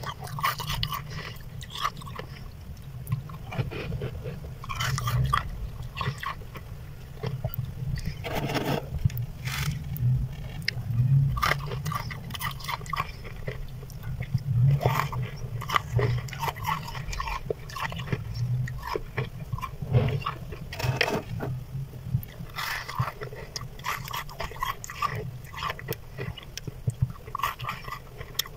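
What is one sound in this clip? Flaky freezer frost is scraped and crunches.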